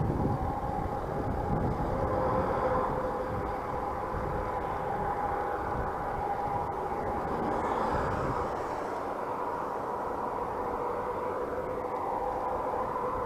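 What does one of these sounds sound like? Wind rushes steadily over a moving bicycle.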